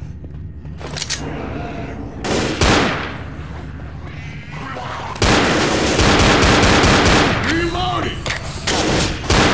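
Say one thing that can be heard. A gun fires in loud, rapid bursts of shots.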